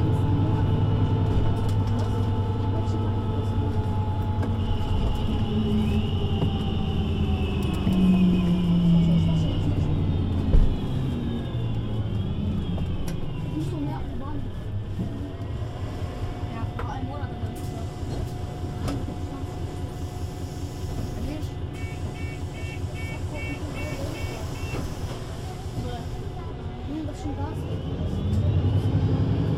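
A bus engine idles with a steady low hum close by.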